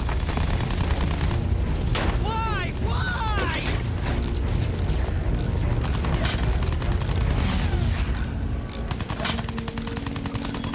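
Machine guns fire in rapid bursts.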